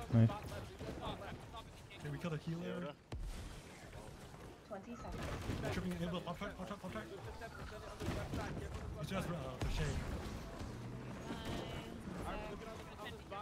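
Magic blasts burst and whoosh.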